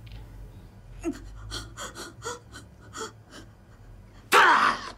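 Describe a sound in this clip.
A woman speaks urgently close by.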